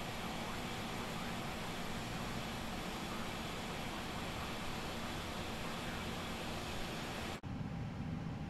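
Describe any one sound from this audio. A jet airliner's engines roar steadily as it taxis.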